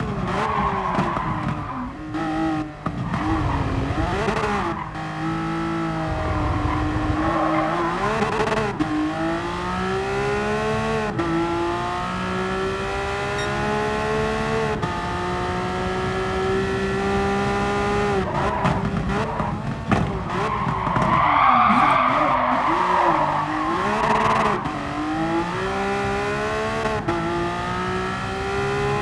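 A racing car engine revs high and shifts gears, rising and falling in pitch.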